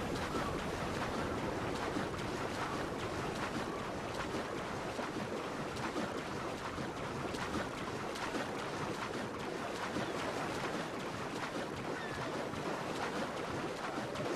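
A swimmer splashes steadily through water.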